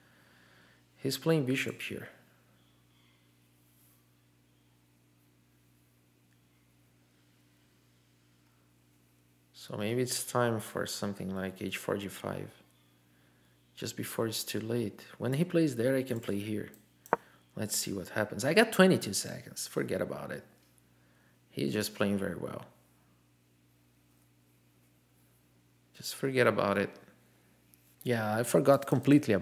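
A man speaks calmly and thoughtfully into a close microphone, with pauses.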